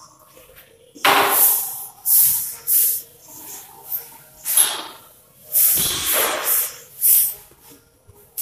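A chalk duster rubs across a board in quick strokes.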